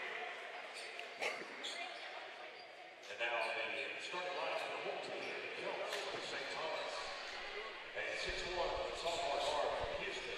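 A group of young men chatter and call out.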